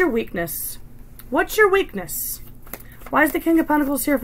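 A woman shuffles a deck of cards.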